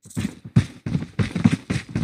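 A gun fires a quick burst of shots.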